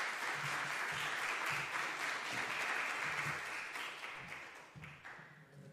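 An audience applauds in a large hall, and the applause slowly fades.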